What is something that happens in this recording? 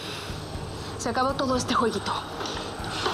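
A young woman speaks sharply up close.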